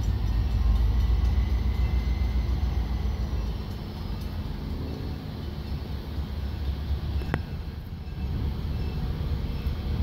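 A train locomotive rumbles as it approaches along the track.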